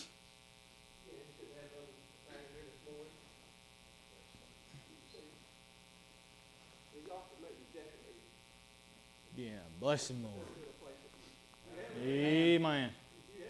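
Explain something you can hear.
A middle-aged man speaks calmly to a gathering.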